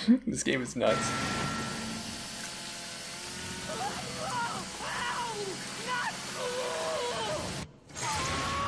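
A chainsaw roars as it cuts.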